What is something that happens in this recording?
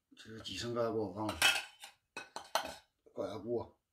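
A metal lid clanks on a pot.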